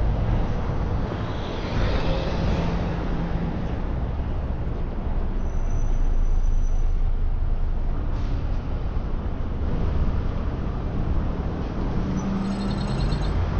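Traffic hums along a city street.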